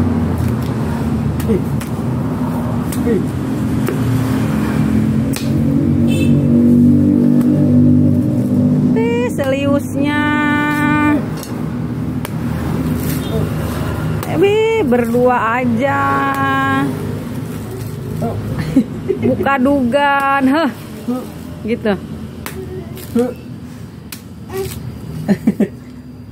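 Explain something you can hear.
A knife taps and scrapes against a coconut shell.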